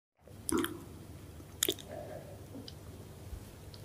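Shellfish squish softly as fingers dip them in sauce.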